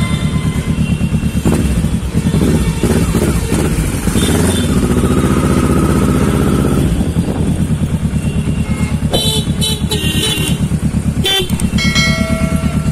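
A parallel-twin sport motorcycle burbles as it rolls slowly through traffic.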